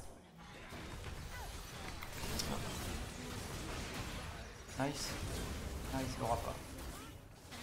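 Fantasy battle sound effects whoosh and crackle.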